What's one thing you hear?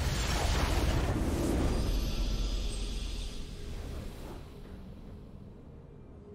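A triumphant game victory fanfare booms and slowly fades away.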